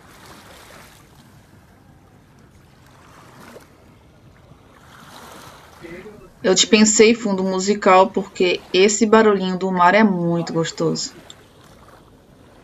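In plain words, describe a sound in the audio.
Small waves lap gently at the water's edge.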